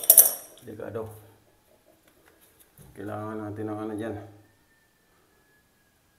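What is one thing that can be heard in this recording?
A metal wrench clanks down onto a tiled floor.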